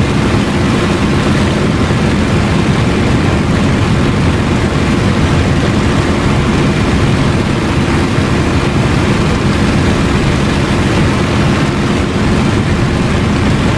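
Wind rushes past a cockpit canopy.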